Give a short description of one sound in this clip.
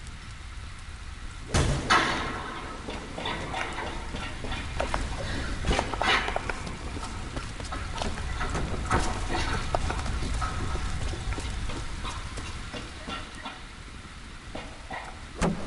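A torch flame crackles and hisses.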